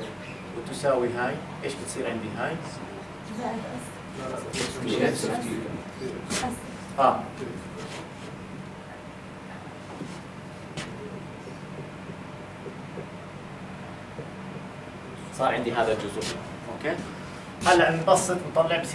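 A man lectures calmly in a room with some echo.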